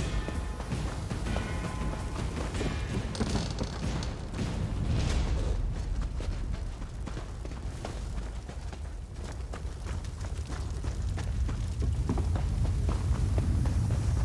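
Footsteps thud quickly on soft ground and wooden planks.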